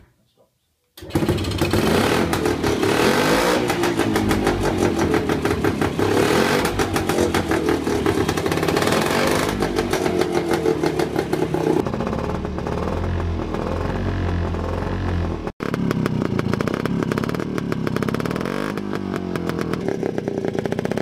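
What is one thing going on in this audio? A small engine runs with a rapid, rattling putter.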